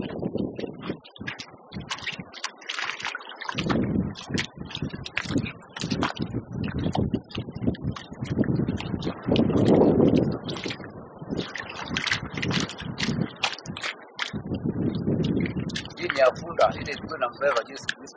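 Hands splash and scoop in shallow muddy water.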